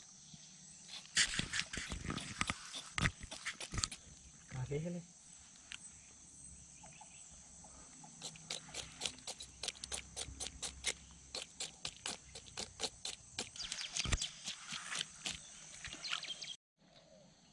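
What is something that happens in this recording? Water splashes and sloshes as a fish thrashes in shallow water close by.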